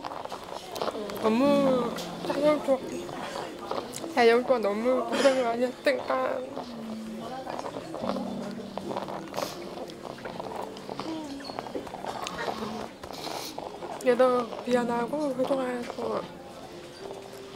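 A young woman speaks through tears close by, her voice breaking.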